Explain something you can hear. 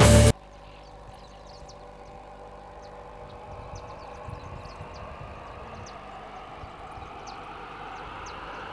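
A car approaches along a road, its engine and tyres growing slowly louder.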